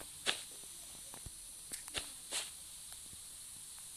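A block breaks with a short crunch.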